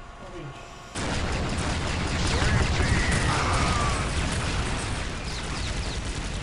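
A laser gun fires a buzzing beam.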